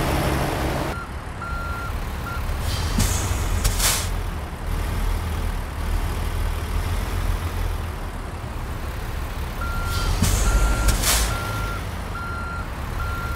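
A diesel semi-truck engine idles.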